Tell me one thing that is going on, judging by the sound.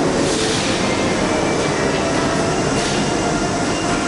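Subway train doors slide shut with a thud.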